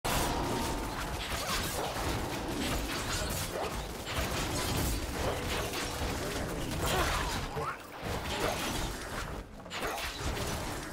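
Fantasy battle effects whoosh, crackle and clash without a break.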